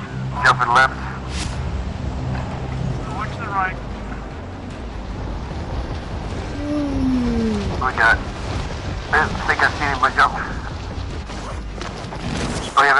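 Wind rushes loudly past during a fast fall.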